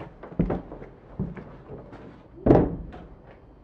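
A wooden window rattles and thumps as it is pulled open.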